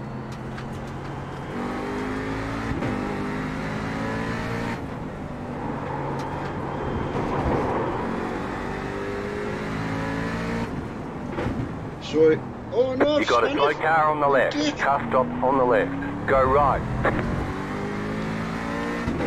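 A racing car engine revs up and down steadily.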